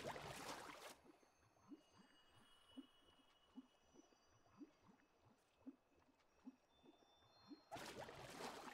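Soft underwater bubbling pulses at a steady pace.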